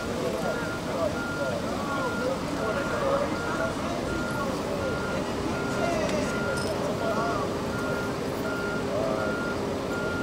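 A vehicle engine idles nearby.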